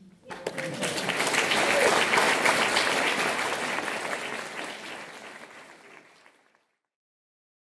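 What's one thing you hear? An audience applauds in a hall, then the applause fades away.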